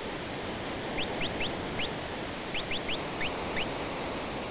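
Short electronic blips chirp in quick bursts.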